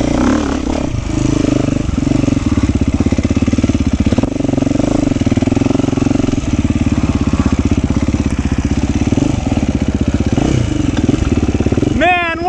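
A dirt bike engine revs and putters loudly up close.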